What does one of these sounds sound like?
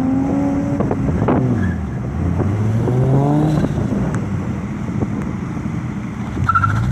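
A car engine idles loudly with a deep, burbling rumble and revs up now and then.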